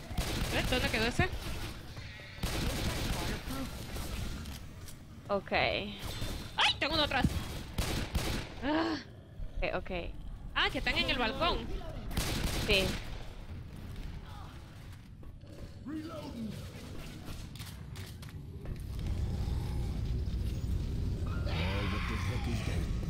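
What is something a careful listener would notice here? A young woman talks and laughs with animation into a microphone.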